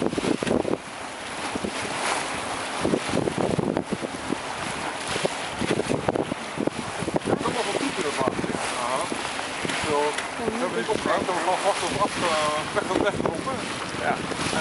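Strong wind buffets loudly outdoors.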